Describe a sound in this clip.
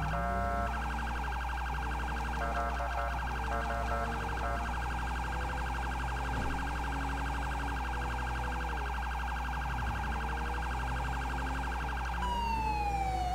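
A police siren yelps in a fast, steady pulse.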